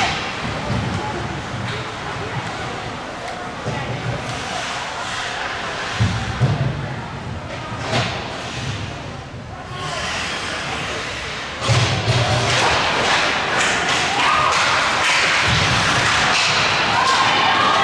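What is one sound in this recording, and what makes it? Hockey sticks clack against the puck and ice in a large echoing rink.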